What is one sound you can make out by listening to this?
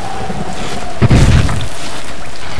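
A heavy thud sounds once.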